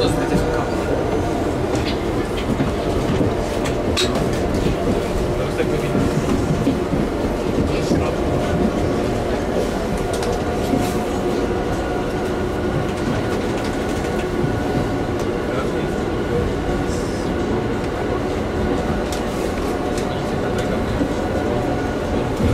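Train wheels click and rattle over the rails.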